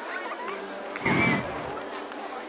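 A short bright chime sounds.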